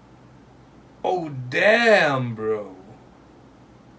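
A young man lets out a short, drawn-out exclamation close to a microphone.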